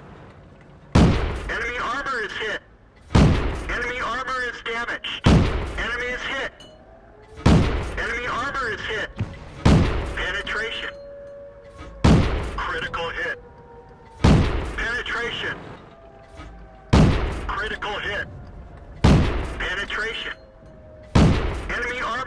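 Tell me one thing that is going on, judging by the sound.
A tank cannon fires again and again with loud booms.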